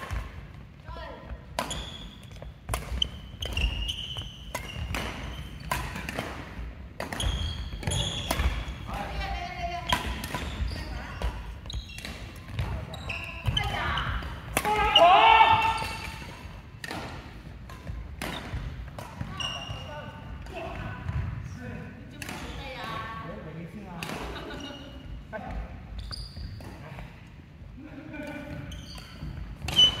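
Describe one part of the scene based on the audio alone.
Shoes squeak sharply on a wooden court floor.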